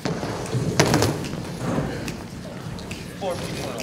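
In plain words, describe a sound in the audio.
A man plays a keyboard softly.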